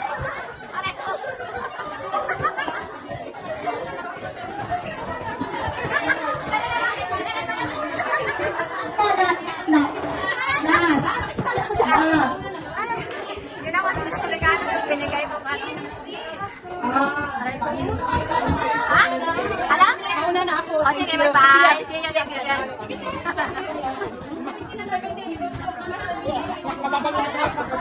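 A crowd of adults chatters and laughs indoors.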